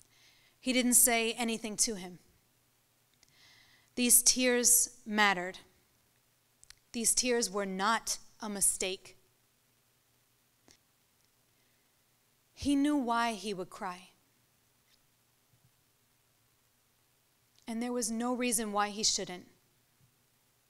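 A young woman recites slowly into a microphone, in short phrases with long pauses.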